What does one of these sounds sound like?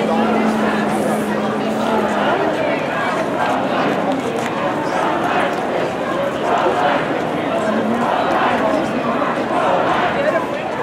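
Footsteps shuffle on pavement as a crowd walks by.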